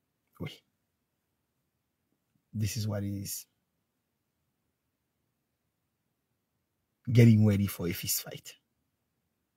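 A man speaks calmly in short bursts close to a phone microphone.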